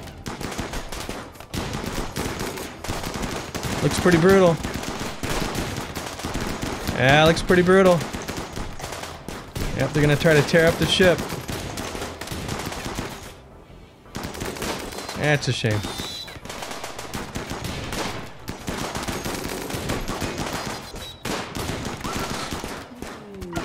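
Gunshots crack rapidly in a battle.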